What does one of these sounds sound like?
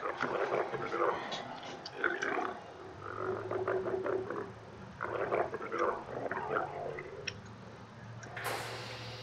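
Alien creatures hiss and screech close by.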